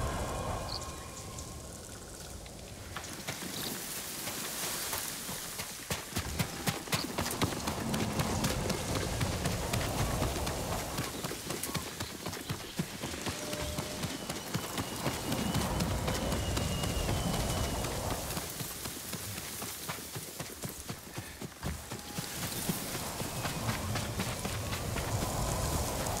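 Hooves pound quickly on the ground as a horse gallops.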